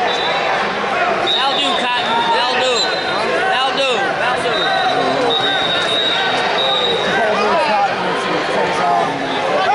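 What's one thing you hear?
A crowd of many voices chatters and shouts in a large echoing hall.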